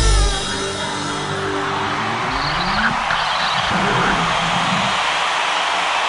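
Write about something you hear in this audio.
A band plays loud live music in a large echoing arena.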